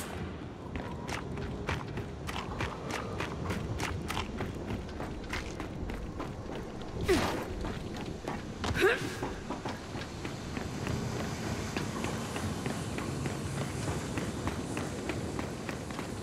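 Heavy boots thud and clank on a metal floor at a walking pace.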